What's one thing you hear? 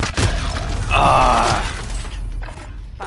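Explosions rumble and boom loudly.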